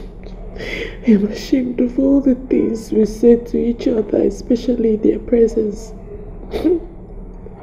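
A young woman sobs and wails close by.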